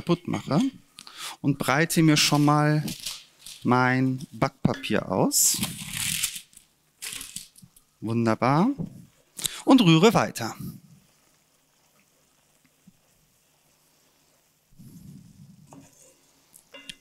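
A wooden spoon scrapes and stirs in a frying pan.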